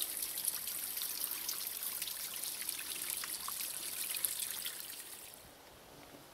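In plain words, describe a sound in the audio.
Water trickles and splashes over stones close by.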